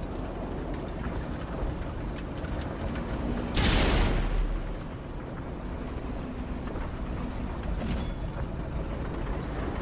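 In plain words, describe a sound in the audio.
A light tank's engine rumbles as it drives.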